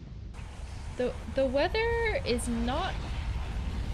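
A young woman speaks briefly and expressively into a microphone.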